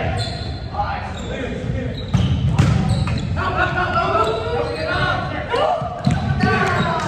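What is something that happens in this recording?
A volleyball is struck with dull thumps.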